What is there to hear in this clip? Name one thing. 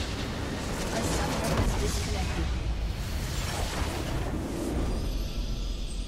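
A game structure explodes with a loud crashing blast.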